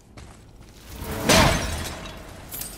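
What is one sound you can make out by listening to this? An axe strikes with a loud heavy crash.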